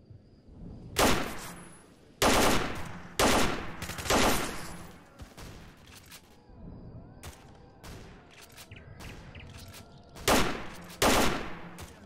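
A rifle fires loud, sharp shots with a short echo.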